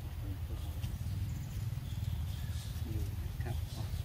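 A monkey chews soft fruit.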